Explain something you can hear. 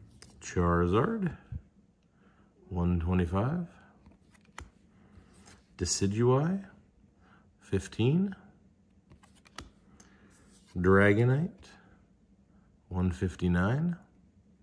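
Stiff trading cards rustle and flick between fingers.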